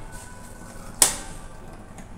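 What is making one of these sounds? A finger presses a lift button with a sharp click.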